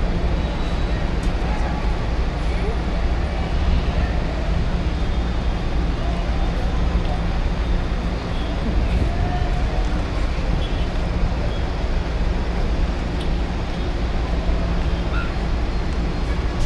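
Footsteps pass on a walkway nearby.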